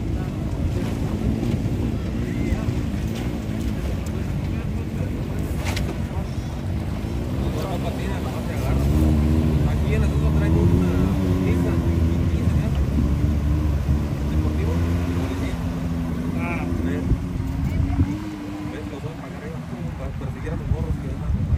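A pickup truck's engine rumbles as the truck drives through a shallow river.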